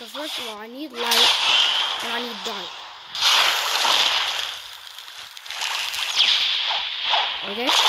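Bursts of magical energy whoosh and crackle loudly.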